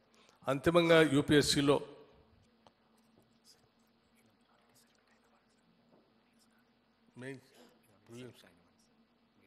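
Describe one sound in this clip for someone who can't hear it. A middle-aged man speaks firmly into a microphone in a large room.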